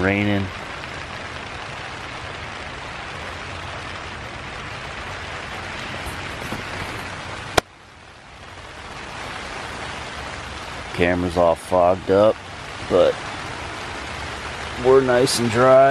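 Wind blows steadily against a tent.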